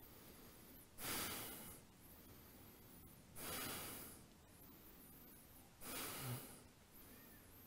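A man breathes out deeply and slowly, again and again.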